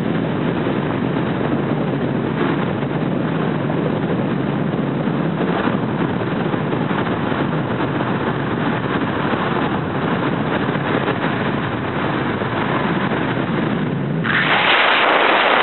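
Wind rushes past the car, growing louder near the end.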